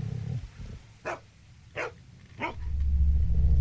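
A dog barks a few times.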